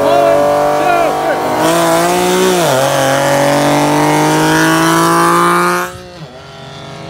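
A sports car engine revs loudly close by.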